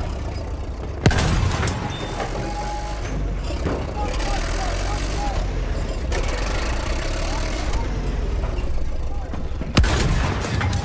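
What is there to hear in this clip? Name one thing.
A tank cannon fires with a sharp blast.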